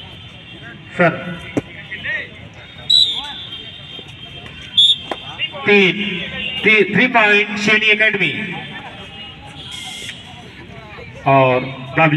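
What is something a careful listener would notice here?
Young men shout and call out loudly nearby, outdoors.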